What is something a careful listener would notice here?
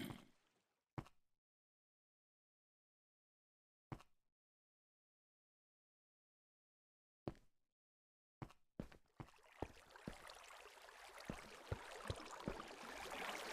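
A pickaxe strikes stone with sharp knocks.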